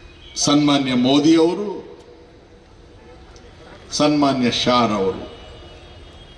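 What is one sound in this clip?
An elderly man speaks forcefully into a microphone over a loudspeaker.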